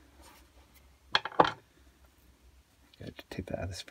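Small metal parts click softly as they are handled.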